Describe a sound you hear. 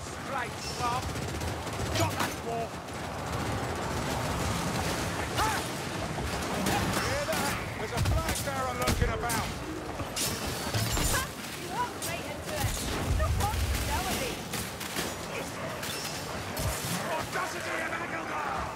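A crossbow fires bolts with sharp twangs.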